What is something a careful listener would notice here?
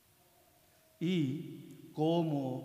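A man chants loudly in a large echoing hall.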